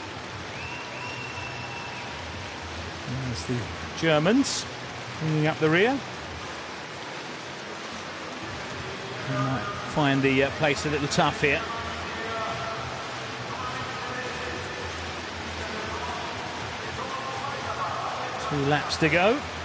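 A large crowd murmurs and cheers in a big open stadium.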